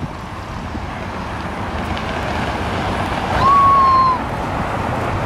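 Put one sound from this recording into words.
A jet airliner's engines hum steadily while taxiing.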